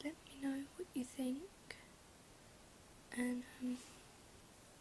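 A young girl talks close to the microphone in short, casual bursts.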